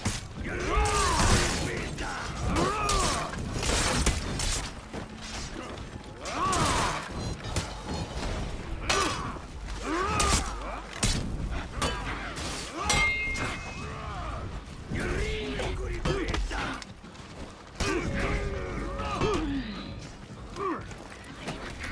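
Swords clash and clang in a close fight.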